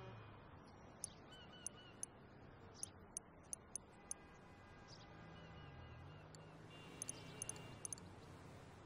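Short, soft interface clicks sound now and then.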